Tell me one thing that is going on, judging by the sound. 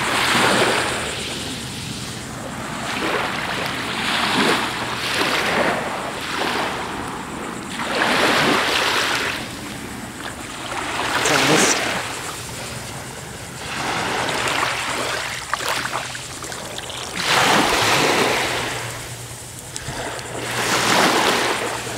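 Small waves wash gently onto a sandy shore in surges.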